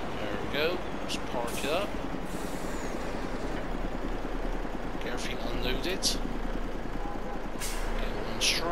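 A truck engine idles with a steady low rumble.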